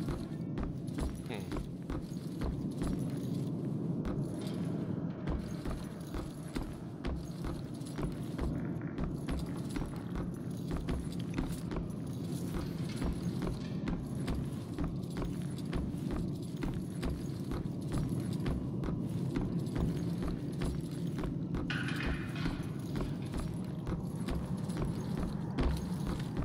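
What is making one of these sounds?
Footsteps thud slowly on wooden floorboards.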